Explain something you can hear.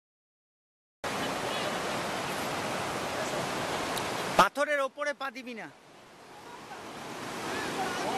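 A river rushes and splashes over rocks.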